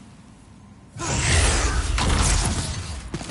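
A loud roaring blast booms and rumbles.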